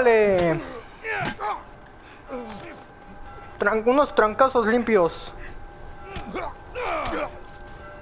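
Punches thud in a scuffle.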